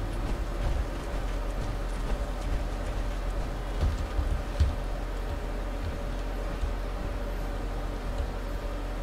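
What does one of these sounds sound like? Heavy footsteps thud steadily on the ground.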